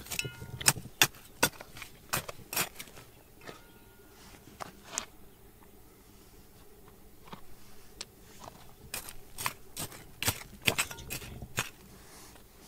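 Pebbles and soil rattle as they fall.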